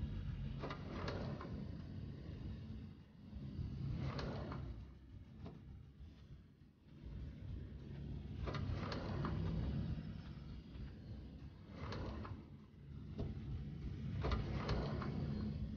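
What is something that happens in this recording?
A sliding glass door rolls open and shut several times.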